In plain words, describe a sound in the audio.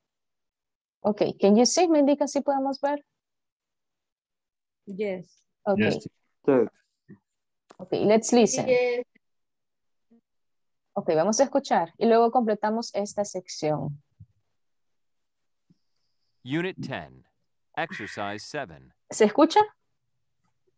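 A young woman speaks calmly over an online call, pausing between phrases.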